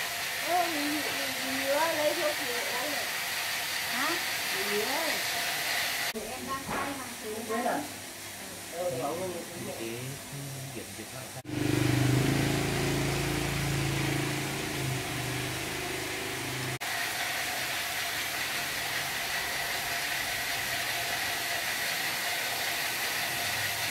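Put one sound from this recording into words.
Metal tongs clink against a hot pan.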